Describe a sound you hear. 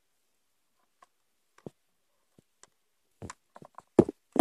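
A mouse scurries and rustles close by.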